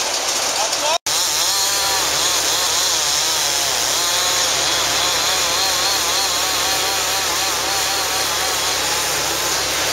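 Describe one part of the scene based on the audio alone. A chainsaw roars as it cuts into a log.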